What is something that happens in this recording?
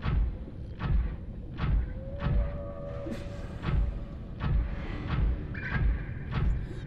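An underwater motor hums with a steady, rhythmic pulsing.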